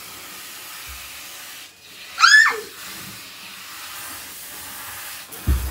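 Water sprays steadily from a shower head.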